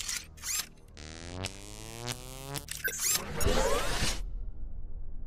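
Electric sparks crackle and buzz.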